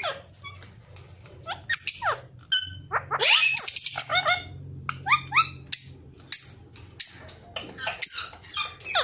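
Parrots squawk and screech loudly close by.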